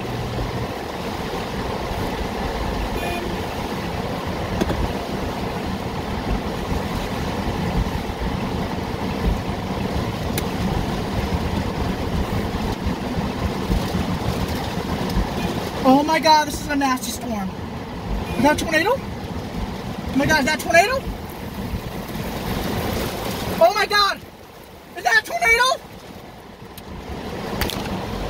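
Heavy rain patters steadily on a car windshield.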